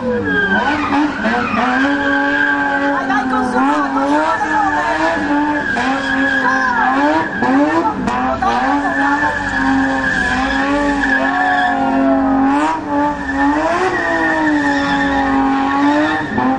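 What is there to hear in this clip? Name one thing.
A car engine roars and revs hard close by.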